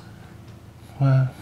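An elderly man speaks with a deep voice nearby.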